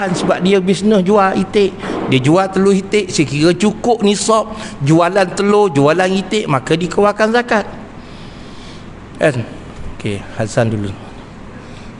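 A middle-aged man speaks with animation into a microphone, heard through a loudspeaker in a room.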